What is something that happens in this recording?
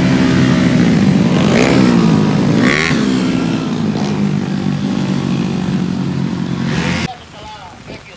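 Motorcycle engines roar and rev loudly as they race past.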